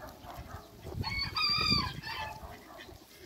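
A duck quacks nearby.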